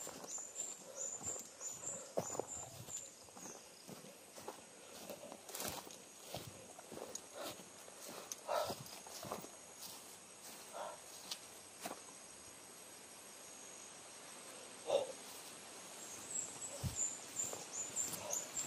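Footsteps rustle through grass and leaves.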